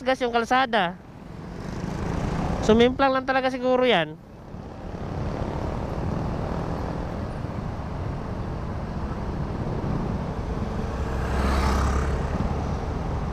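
A motorcycle rides past.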